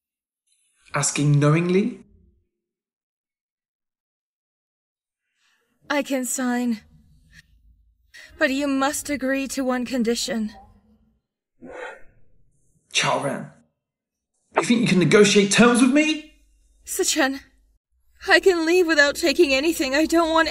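A young man speaks coldly and calmly close by.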